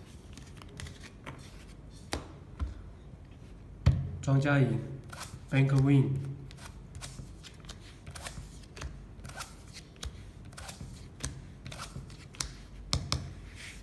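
Playing cards slide and tap on a soft tabletop.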